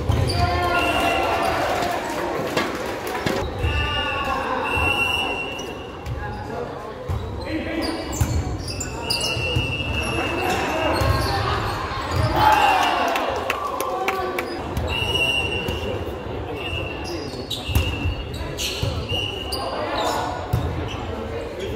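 Players shout and call out in a large echoing gym.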